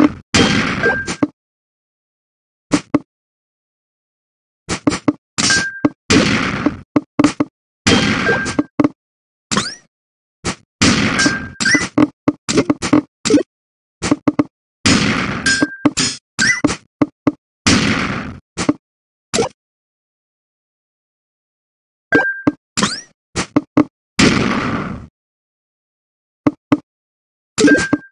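A bright electronic chime sounds as rows of blocks clear.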